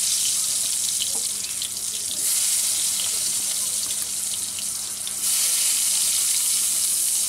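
Hands rub and turn food in a metal plate with soft clicks.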